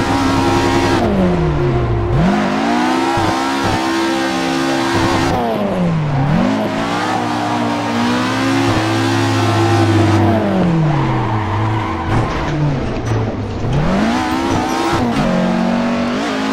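Tyres screech while sliding through bends.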